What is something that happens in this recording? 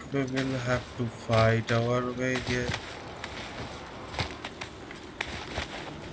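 A warrior climbs a rock wall with scraping handholds.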